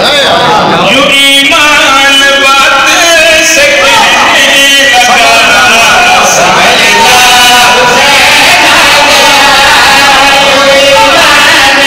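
A man sings through a loudspeaker microphone with strong feeling, echoing in the hall.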